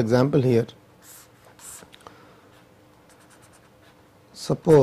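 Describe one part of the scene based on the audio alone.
A felt-tip marker squeaks and scratches across paper in short strokes.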